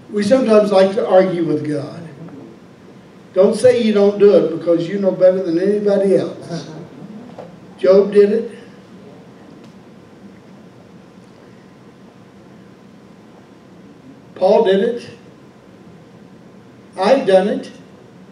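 A man speaks into a microphone in bursts, with long pauses, heard over a loudspeaker in a room.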